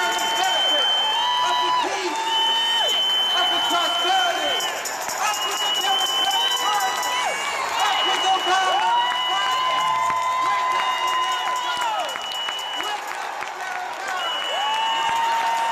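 A man shouts with passion into a microphone over loudspeakers in a large echoing hall.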